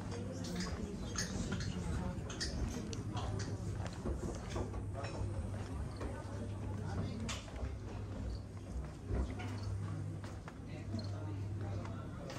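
Women talk quietly a short distance away.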